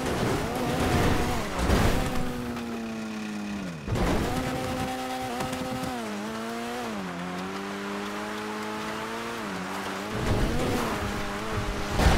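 A buggy engine drones and revs up and down.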